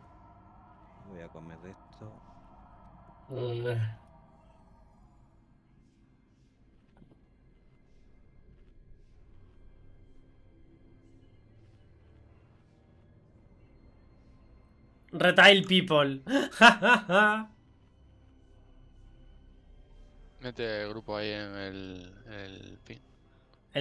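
A young man speaks into a close microphone with animation.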